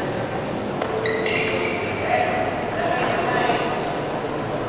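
A table tennis ball clicks back and forth across a table.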